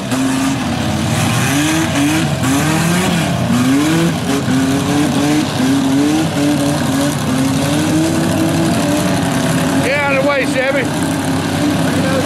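Mud and water splash under churning tyres.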